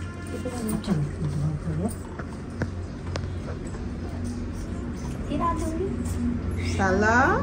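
Young children talk quietly nearby.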